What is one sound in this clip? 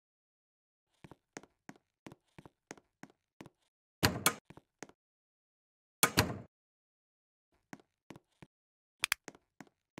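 Quick light footsteps tap on a hard floor.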